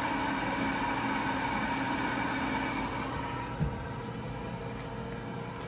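An oven fan hums steadily.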